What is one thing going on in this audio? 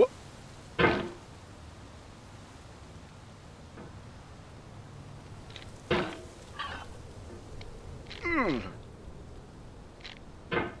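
A metal hammer clanks and scrapes against rock.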